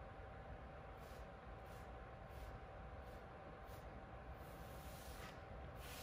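Fingers brush and swish softly through sand.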